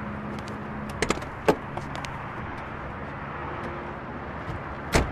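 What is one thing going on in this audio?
Car doors click and thump shut.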